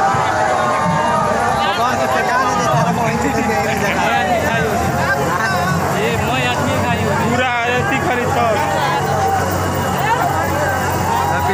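A large crowd of men shouts and chants loudly outdoors.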